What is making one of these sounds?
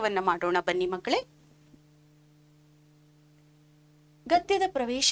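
A woman speaks clearly into a microphone, explaining calmly.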